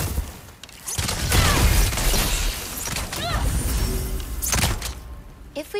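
A fiery explosion bursts and rumbles.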